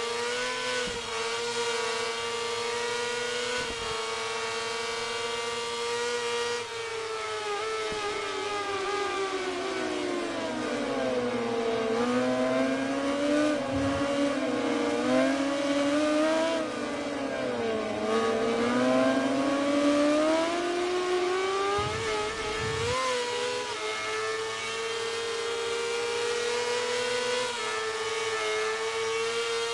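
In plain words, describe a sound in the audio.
A racing motorcycle engine whines at high revs, dropping in pitch while braking into a corner and rising again as it speeds away.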